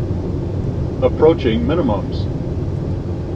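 A man speaks briefly through a headset radio.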